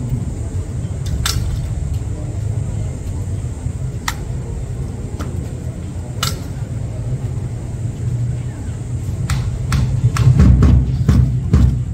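Rifles clack sharply in drill.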